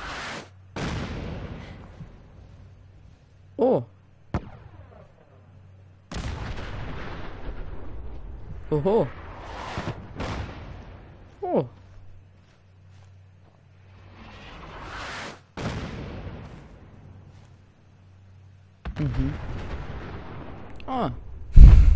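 Explosions boom and rumble again and again.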